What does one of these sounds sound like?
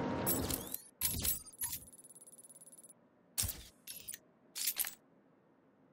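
Short electronic menu blips and whooshes sound several times.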